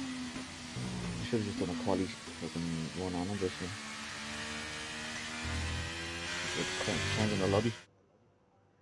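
A racing car engine roars and revs up and down through gear changes.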